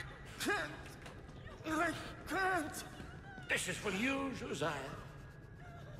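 A young man talks through a headset microphone.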